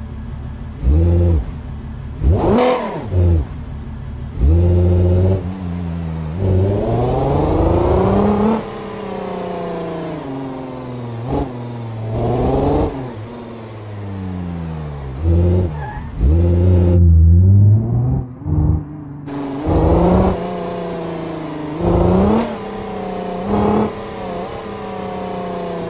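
A video game car engine revs and shifts through the gears.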